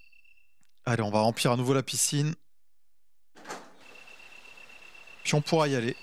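Heavy metal doors creak open.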